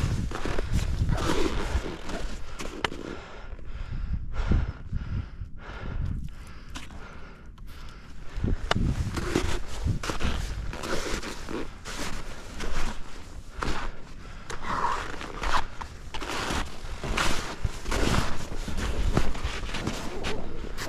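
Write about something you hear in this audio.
Wind rushes past a microphone outdoors.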